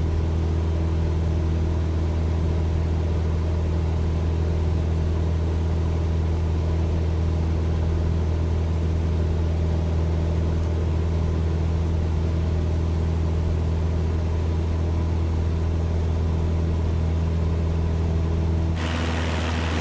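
A small propeller plane's engine drones steadily, heard from inside the cabin.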